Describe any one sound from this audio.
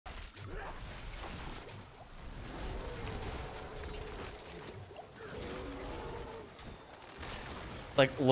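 Game spells crackle and blast in quick bursts.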